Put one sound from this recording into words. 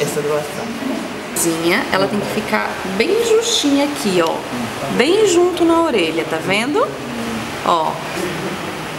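An elderly woman speaks calmly close by.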